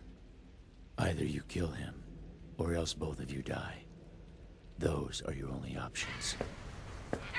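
A man speaks slowly and menacingly, close by.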